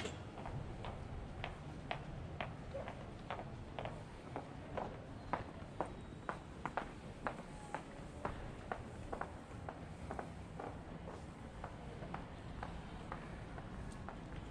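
Footsteps tap steadily on paving.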